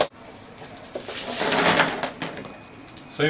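Small plastic pieces rattle and spill onto a desk.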